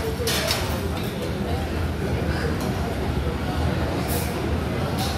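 A crowd chatters in a busy room.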